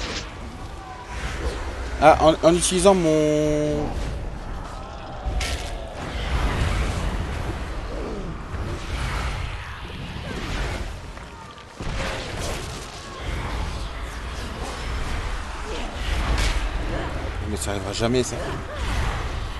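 A spear strikes a large creature again and again.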